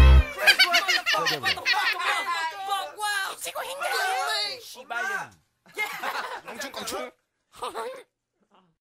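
A young man raps into a microphone.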